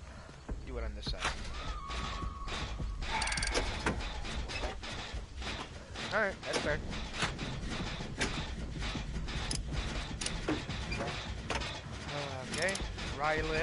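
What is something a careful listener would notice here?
A generator engine clatters and rattles under repair.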